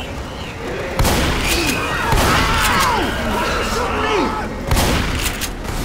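Shotgun blasts boom in sharp, loud bursts.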